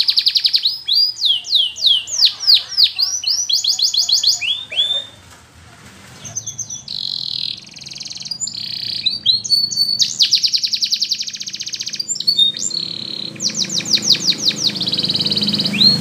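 A canary sings loud, rapid trills and chirps close by.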